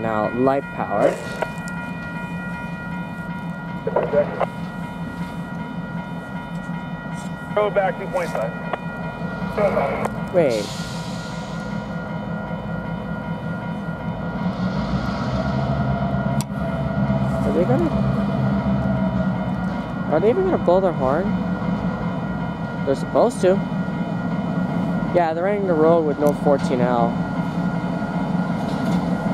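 A diesel locomotive engine rumbles as it approaches, growing louder.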